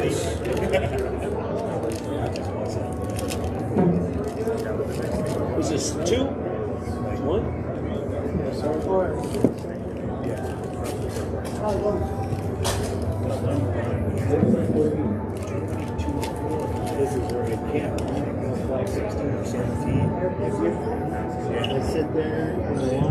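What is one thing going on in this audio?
Several people murmur and talk in an echoing hall.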